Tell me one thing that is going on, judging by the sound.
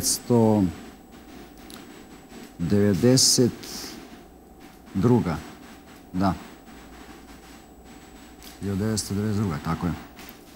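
A middle-aged man speaks slowly and calmly into a microphone, with long pauses.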